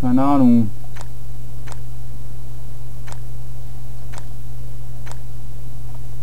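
Mechanical switches click one after another.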